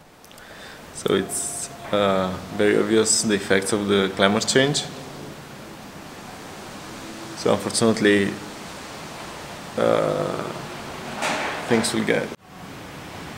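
A man speaks quietly and close by.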